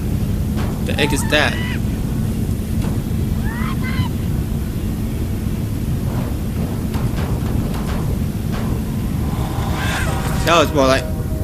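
A young man speaks briefly into a microphone.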